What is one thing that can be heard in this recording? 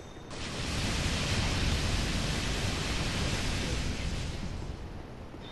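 A loud rushing whoosh of a magic blast roars and then fades.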